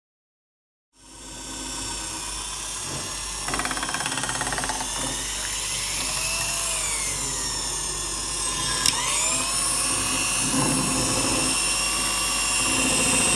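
An electric mixer whirs steadily as its beaters whip batter.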